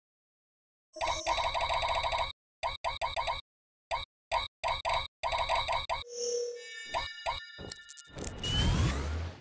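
Electronic chimes and pops ring out as game pieces clear.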